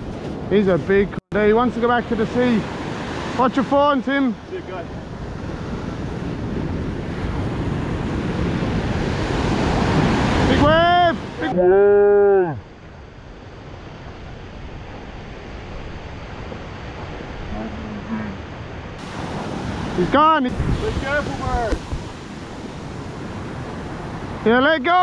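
Waves break and wash up over the sand.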